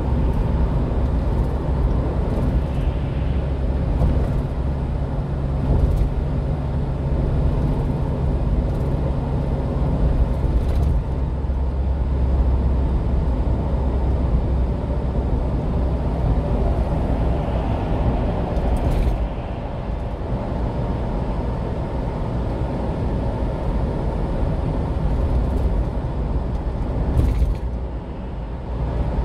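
Tyres roar on wet pavement.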